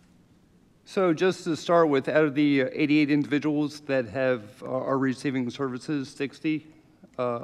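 A man speaks calmly into a microphone nearby.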